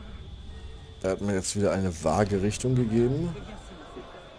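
Several men talk loudly nearby.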